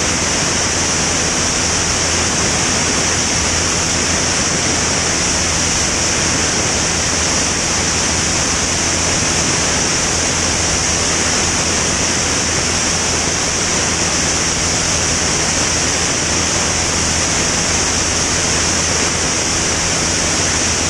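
Wind roars past the plane in a loud, steady rush.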